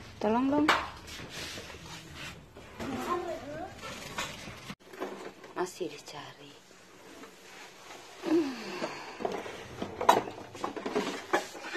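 A paper bag rustles as it is handled.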